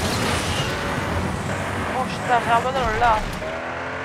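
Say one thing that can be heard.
Tyres skid and scrape on a dirt track.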